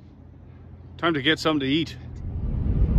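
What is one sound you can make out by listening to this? A middle-aged man speaks close to a microphone.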